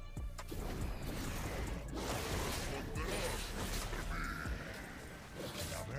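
Video game spell effects and hits crackle and whoosh.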